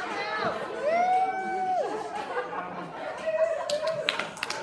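Young girls sing and squeal nearby in a room.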